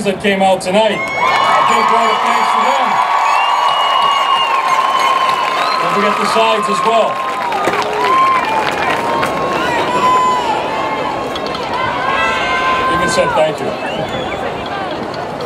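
A large crowd cheers and applauds outdoors.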